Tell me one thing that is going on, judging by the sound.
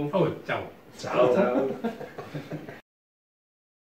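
Several men call out a cheerful goodbye together.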